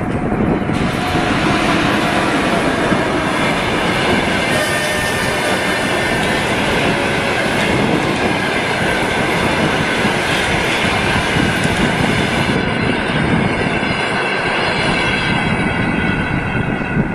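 Steel wheels squeal on the rails.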